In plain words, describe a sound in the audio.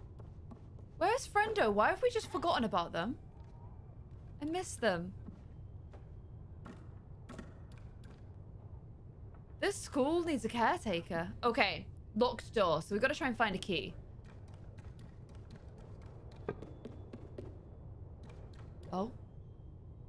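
A young woman talks with animation into a close microphone.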